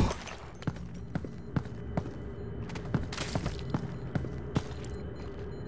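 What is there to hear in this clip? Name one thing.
Heavy footsteps tread steadily on a hard floor.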